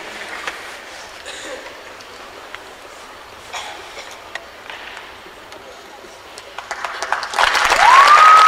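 A large crowd murmurs in a big echoing hall.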